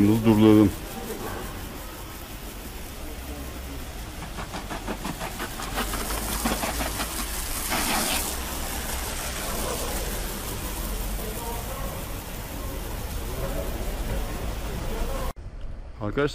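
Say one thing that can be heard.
Water sprays in a steady hiss from a garden hose onto a car.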